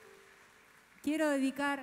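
A woman sings loudly through loudspeakers at a concert.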